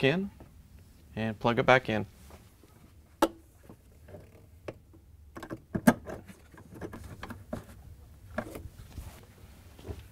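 Plastic parts click and rattle under a gloved hand.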